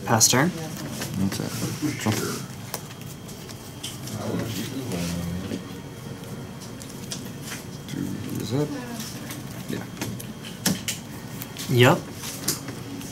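Playing cards are shuffled by hand.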